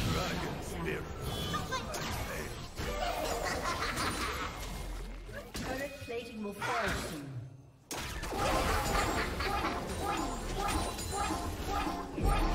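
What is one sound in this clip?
Game characters' weapons clash and strike repeatedly.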